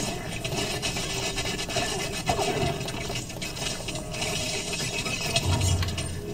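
Video game combat sounds with magical whooshes and hits play.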